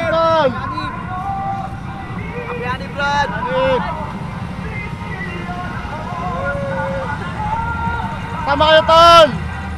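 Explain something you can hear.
A crowd of young people cheers and shouts.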